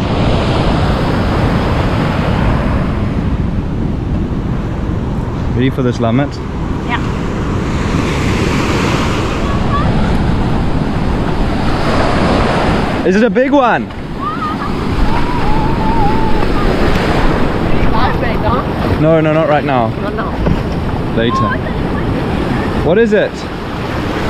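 Waves crash and wash onto the shore.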